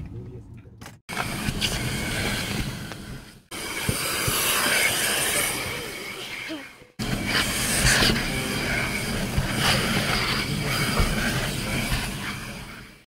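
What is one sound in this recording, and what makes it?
A vacuum cleaner whirs steadily.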